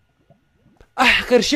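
A young man speaks excitedly close to a microphone.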